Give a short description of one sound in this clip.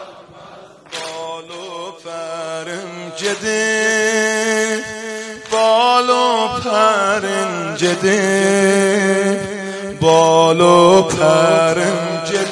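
A young man sings a lament loudly through a microphone.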